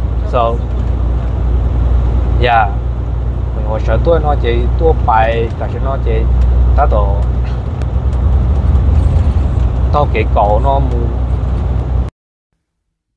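A truck engine rumbles steadily inside a cab.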